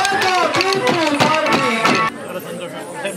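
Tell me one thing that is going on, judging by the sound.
Wooden sticks clack together rhythmically as dancers strike them.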